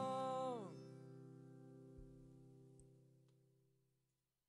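An acoustic guitar plays and quickly fades out.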